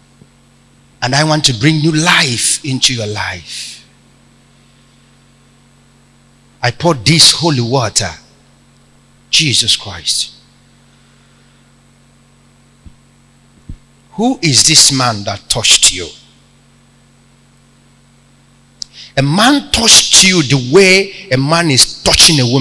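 A man speaks loudly into a microphone in bursts, heard through loudspeakers in a large room.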